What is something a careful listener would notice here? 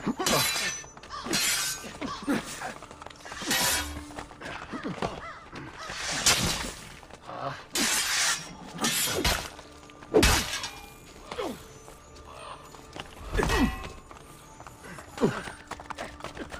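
Swords clash and ring in a fight.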